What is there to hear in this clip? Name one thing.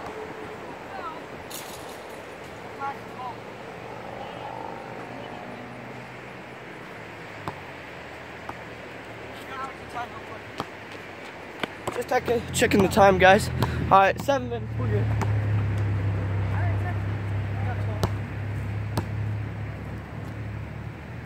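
A basketball bounces on outdoor asphalt.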